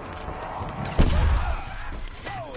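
A gun fires with a heavy thump.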